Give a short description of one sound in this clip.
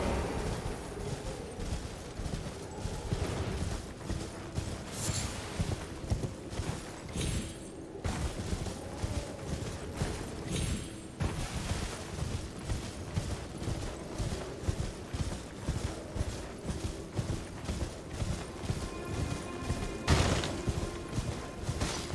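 A horse gallops with quick, rhythmic hoofbeats.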